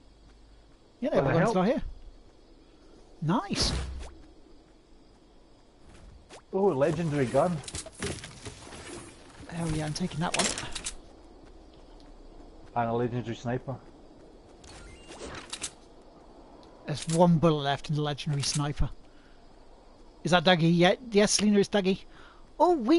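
A young man talks casually into a close microphone, in short bursts.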